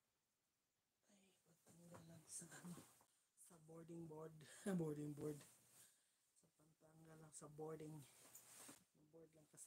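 A middle-aged woman speaks close to a microphone.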